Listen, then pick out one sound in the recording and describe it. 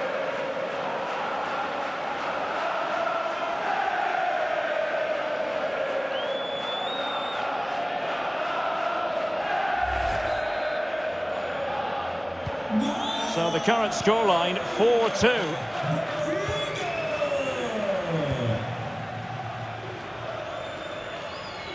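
A large stadium crowd cheers and chants loudly.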